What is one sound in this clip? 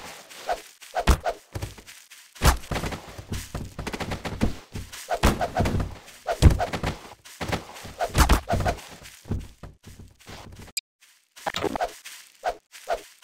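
A metal bar strikes bodies with sharp, heavy whacks.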